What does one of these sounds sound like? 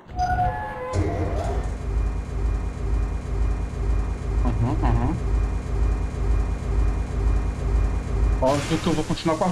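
A heavy metal platform rumbles and hums as it moves.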